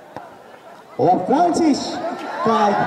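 A crowd of young men shouts and cheers loudly.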